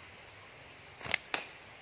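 Leaves rustle and stems snap as a hand pulls at a plant.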